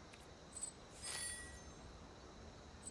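A soft game chime sounds.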